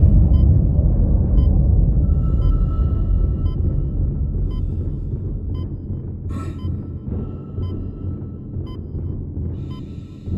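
Heavy boots run across a metal walkway.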